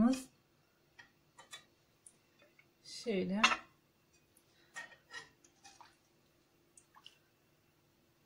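A metal ladle clinks and scrapes against a pot.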